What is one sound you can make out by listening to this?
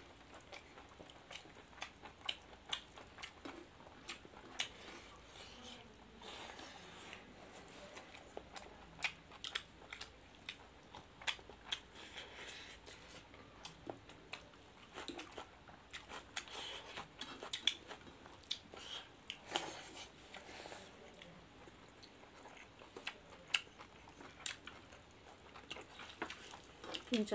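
Two people chew and smack their lips loudly, close by.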